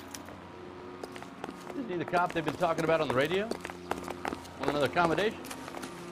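Footsteps tap on stone pavement.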